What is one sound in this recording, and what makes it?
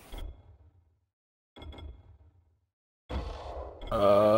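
Game menu clicks sound as options are chosen.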